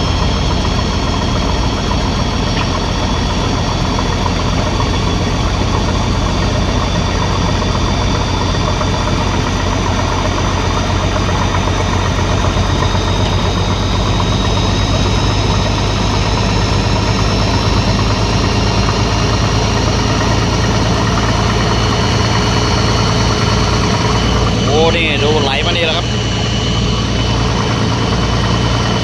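A diesel excavator engine rumbles and whines steadily close by.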